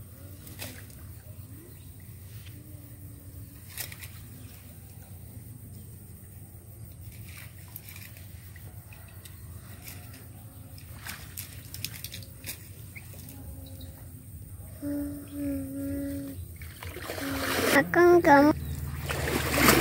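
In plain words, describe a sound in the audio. Water sloshes as a man wades through a muddy stream.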